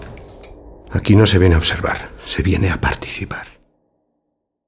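A middle-aged man speaks in a low, intense voice, close by.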